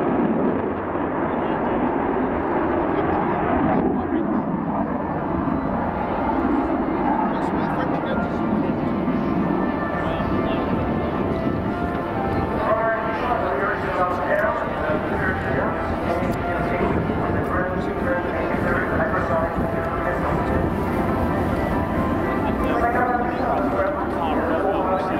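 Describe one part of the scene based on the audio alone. Jet engines roar steadily overhead in the distance.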